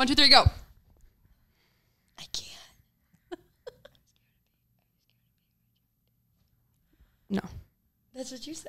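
A young woman speaks quietly into a microphone.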